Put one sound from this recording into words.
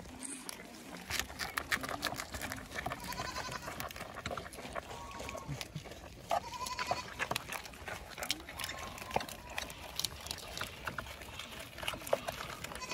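Capybaras crunch and chew on vegetables up close.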